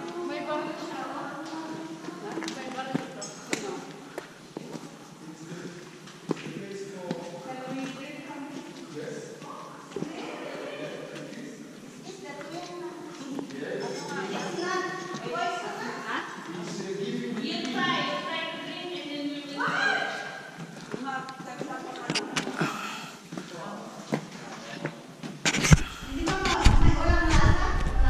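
Several adults talk and chatter nearby.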